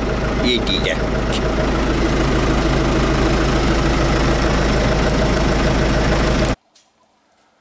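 A tractor engine rumbles loudly and steadily.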